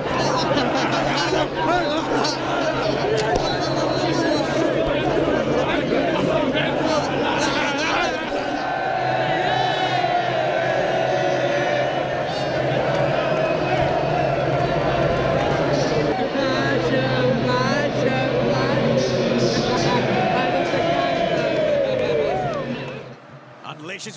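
A large crowd of young men sings and cheers loudly outdoors.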